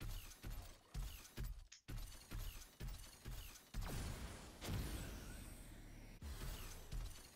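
Heavy metallic footsteps thud in a steady rhythm.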